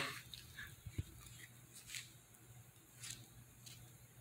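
A fork scrapes and clinks on a plate.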